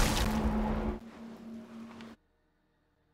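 A magic portal hums and whooshes.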